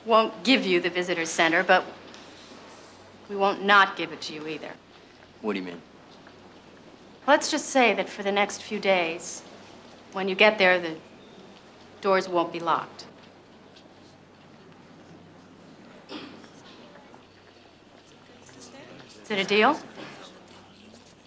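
A woman speaks tensely and firmly nearby.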